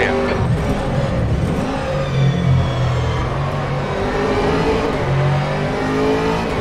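A racing car engine roars loudly, its pitch rising and falling as it shifts gears.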